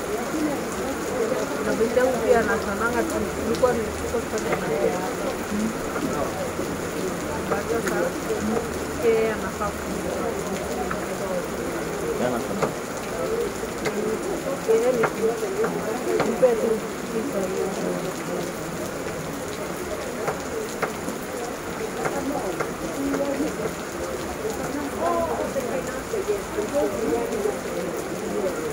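Wind rustles through the leaves of trees.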